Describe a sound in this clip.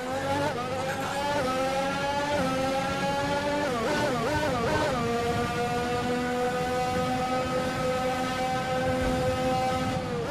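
A racing car engine screams at high revs.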